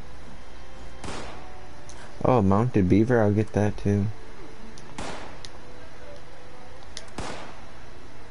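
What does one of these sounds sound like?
A game menu gives short swishing clicks as choices are made.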